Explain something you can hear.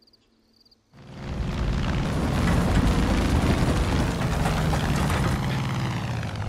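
A small propeller plane's engine roars in a dive.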